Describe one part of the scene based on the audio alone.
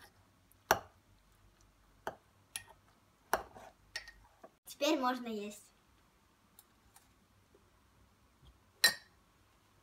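A metal spoon clinks against a ceramic mug.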